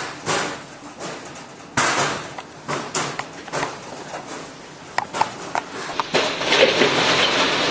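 Rabbits scuffle and thump in wire cages.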